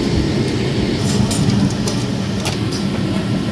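A metal plate clinks against a metal surface.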